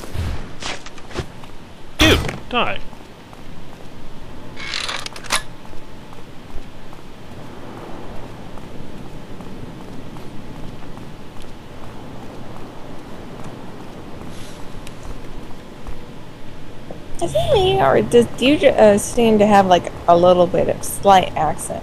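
Footsteps crunch on sand and rock.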